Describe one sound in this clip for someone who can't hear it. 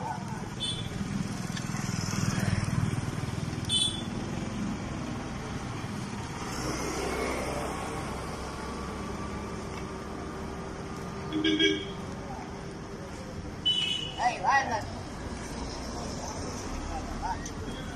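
Motorbikes pass by on a street.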